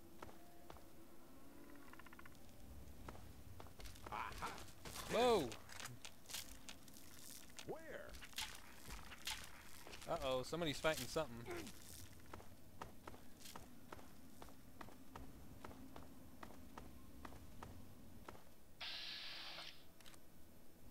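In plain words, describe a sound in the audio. Footsteps crunch over rubble and gravel.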